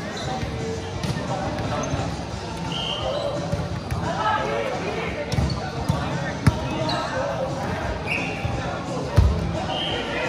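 A volleyball thuds off hands and arms.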